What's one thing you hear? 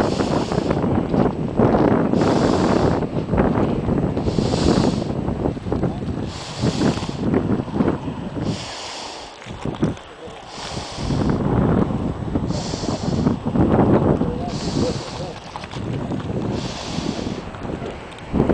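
Strong wind gusts and buffets outdoors.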